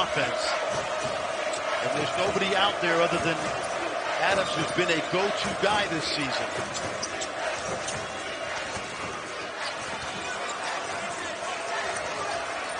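A large indoor crowd murmurs and cheers steadily.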